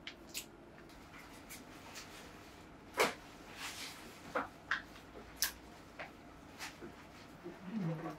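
Stacks of stiff paper rustle and thump as they are handled.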